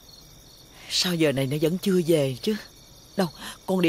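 A man talks calmly outdoors at night, a little way off.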